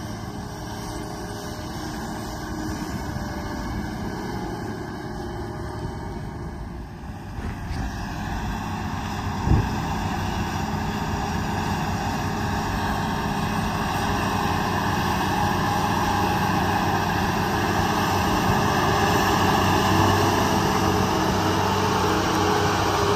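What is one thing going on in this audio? A large tracked tractor engine rumbles steadily and grows louder as it approaches.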